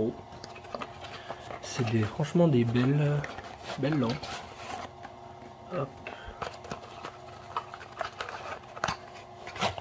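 Cardboard rustles and scrapes as a box is handled up close.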